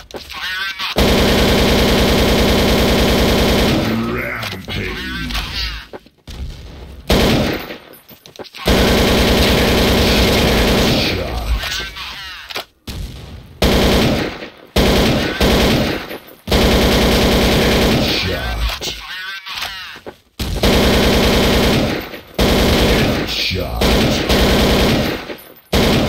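A rifle fires rapid bursts of automatic gunfire.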